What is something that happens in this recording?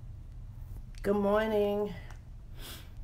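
A woman speaks briefly and close by.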